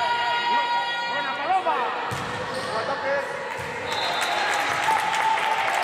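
Sneakers squeak sharply on a gym floor in an echoing hall.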